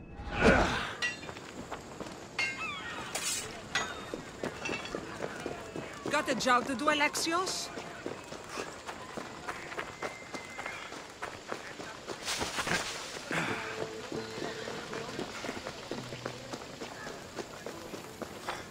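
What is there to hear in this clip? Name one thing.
Footsteps run quickly over dirt and gravel.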